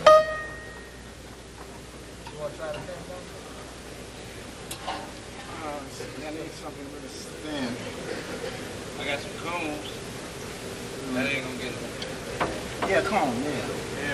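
A piano plays.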